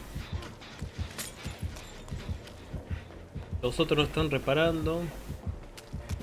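Footsteps run across wooden boards.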